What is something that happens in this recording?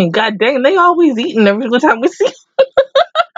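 A young woman talks animatedly into a microphone.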